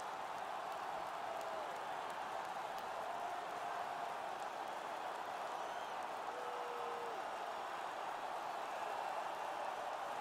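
A large arena crowd murmurs steadily.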